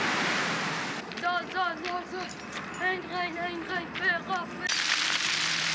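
A young girl sings close by.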